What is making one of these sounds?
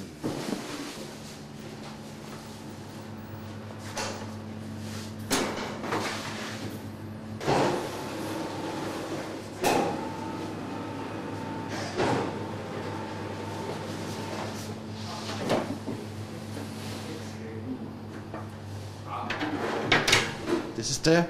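An electric mixer hums steadily.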